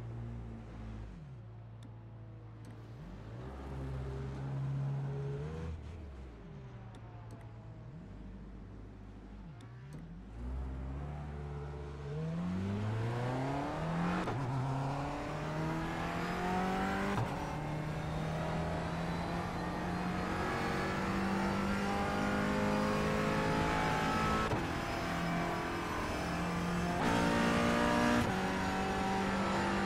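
A racing car engine revs up and down through gear changes, then roars at full speed.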